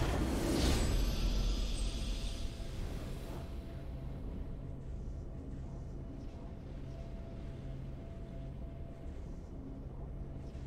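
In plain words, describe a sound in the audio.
A triumphant fanfare of music plays steadily.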